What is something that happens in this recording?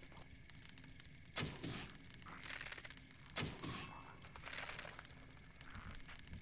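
Torches crackle softly in an echoing cave.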